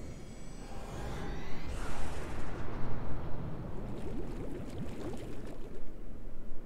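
Underwater bubbles rush and gurgle.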